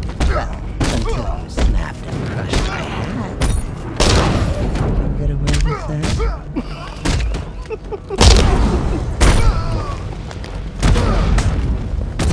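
Heavy punches and kicks land with sharp thuds in quick succession.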